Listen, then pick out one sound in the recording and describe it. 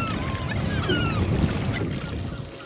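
Seagulls call overhead.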